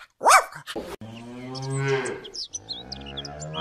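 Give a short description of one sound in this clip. A cow moos.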